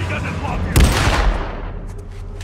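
A gun fires a loud shot.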